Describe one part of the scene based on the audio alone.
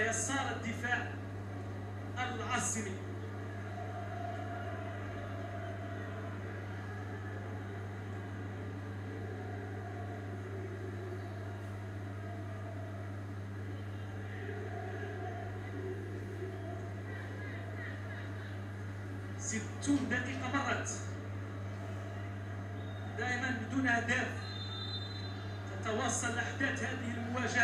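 Faint stadium crowd noise plays steadily from a television.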